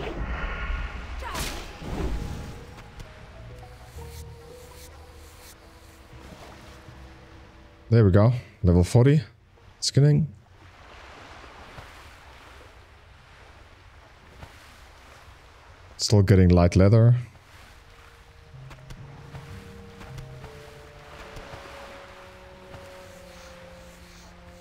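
A sword strikes a creature with sharp hits.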